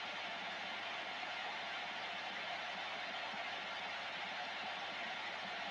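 Steady radio static hisses from a loudspeaker.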